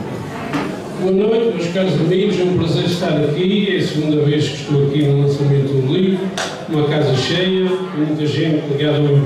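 A middle-aged man sings into a microphone, heard through loudspeakers.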